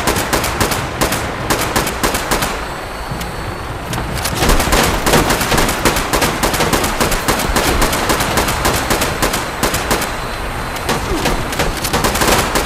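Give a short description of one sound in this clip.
Helicopter rotors thump overhead with a steady drone.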